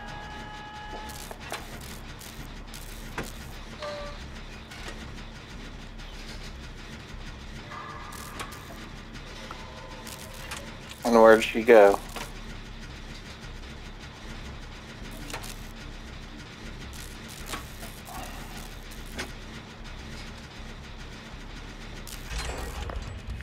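A machine clicks and rattles as it is being repaired.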